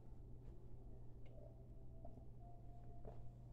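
A young man slurps a drink from a mug.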